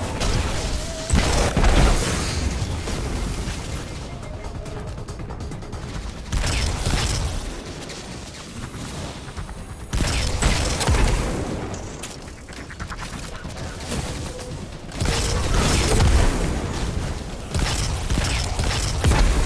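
Gunshots blast in bursts with heavy booms.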